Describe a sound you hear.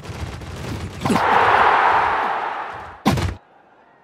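A stadium crowd cheers loudly, then fades.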